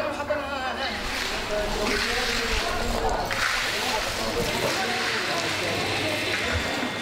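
A broom scrapes and sweeps over gritty rubble.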